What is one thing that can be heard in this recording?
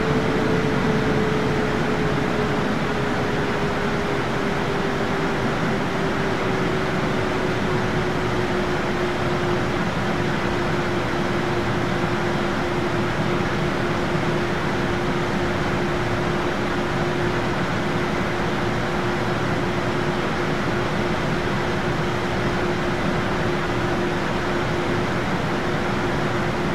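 Jet engines roar steadily in flight, heard from inside the cabin, with a whining tone that slowly drops in pitch.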